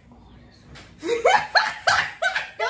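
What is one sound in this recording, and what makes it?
A young woman laughs loudly up close.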